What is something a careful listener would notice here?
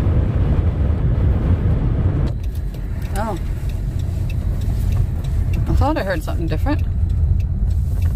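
A car engine and tyres rumble steadily from inside a moving car.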